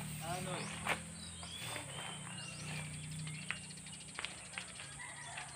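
A man sweeps the ground with a broom.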